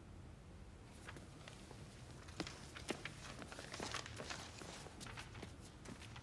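Paper rustles.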